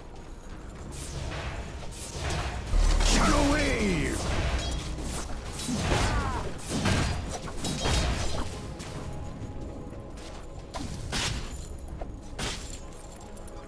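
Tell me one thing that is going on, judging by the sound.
Weapons clash and hit in quick bursts.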